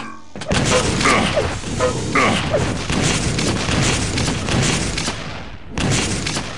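Rapid gunfire and explosions crackle and boom in a video game.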